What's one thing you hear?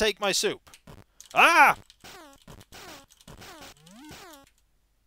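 Electronic game sound effects bleep and glide up and down in pitch.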